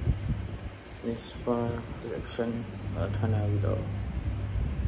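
A man speaks quietly close by.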